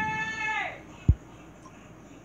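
A menu button gives a short click.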